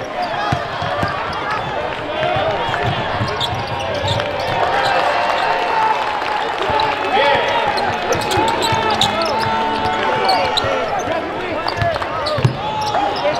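A crowd murmurs and chatters in a large echoing arena.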